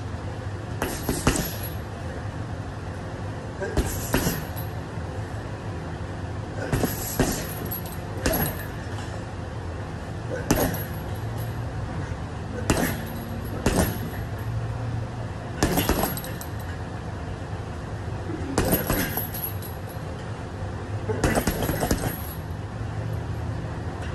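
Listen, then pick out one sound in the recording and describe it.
A bag's chains rattle and clink as it swings.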